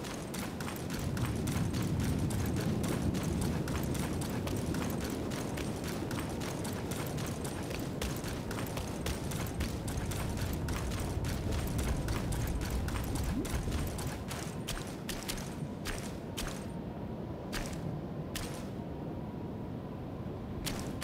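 Footsteps crunch on loose stone.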